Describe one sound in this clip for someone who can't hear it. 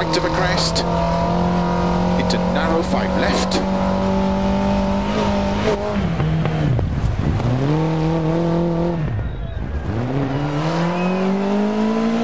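A rally car engine roars, revving up and dropping sharply with each gear change.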